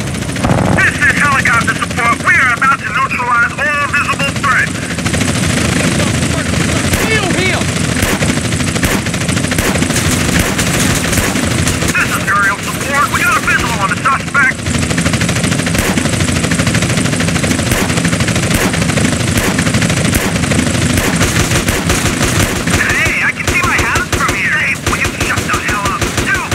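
Pistol shots fire rapidly.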